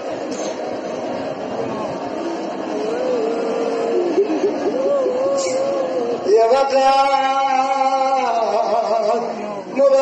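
A man chants loudly through a microphone and loudspeakers, with an echo.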